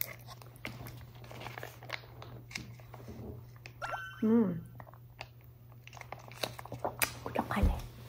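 A young woman sips juice from a pouch.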